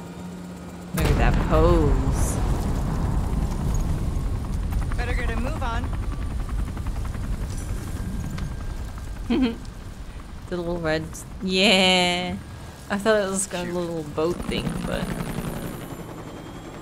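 A helicopter's rotor thumps and roars overhead.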